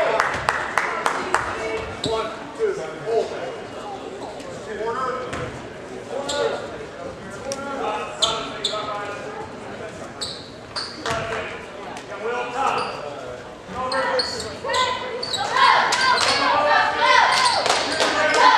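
A crowd chatters and cheers in an echoing gym.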